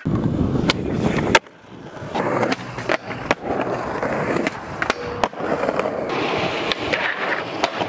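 A skateboard clacks and slaps down on landing.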